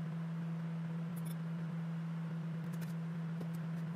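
Glass clinks softly as a jar is handled.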